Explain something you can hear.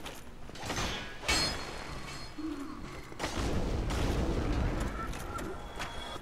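A burst of fire roars and crackles.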